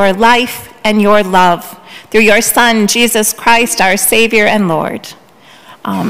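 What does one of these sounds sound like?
A middle-aged woman sings a short chant through a microphone in an echoing hall.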